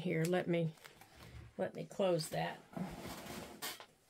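Paper rustles as a sheet is lifted away.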